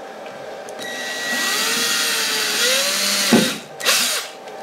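A cordless drill whirs as it drills into wood.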